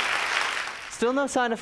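A woman sings loudly.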